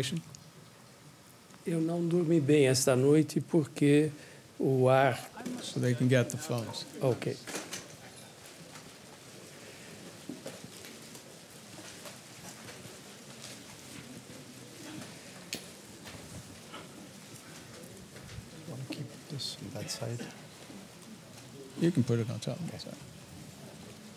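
An audience murmurs quietly in a large hall.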